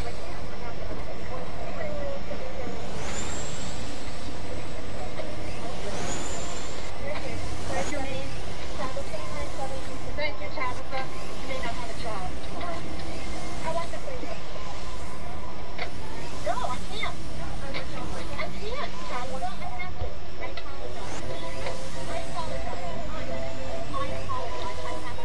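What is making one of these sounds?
Upbeat electronic dance music plays steadily throughout.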